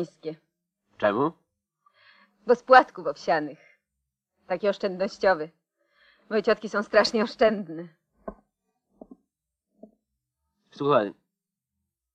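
A man talks calmly at close range.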